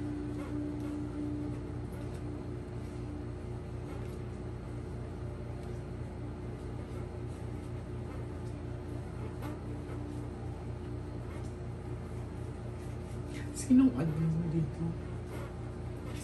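Cards slide and tap softly on a cloth-covered table.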